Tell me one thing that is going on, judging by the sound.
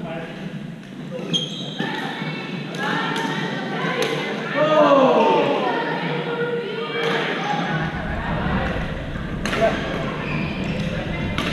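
Paddles pop against a plastic ball in a large echoing gym.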